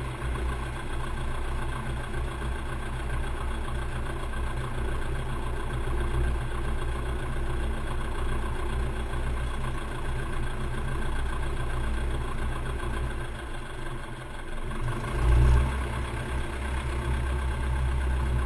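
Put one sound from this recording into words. A propeller engine drones steadily up close, briefly swelling louder.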